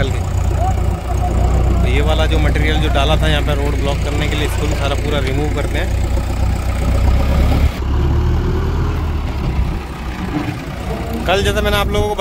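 A diesel engine of a backhoe loader rumbles and idles steadily nearby.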